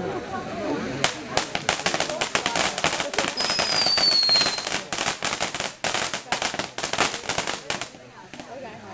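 A firework fountain crackles with rapid popping bursts.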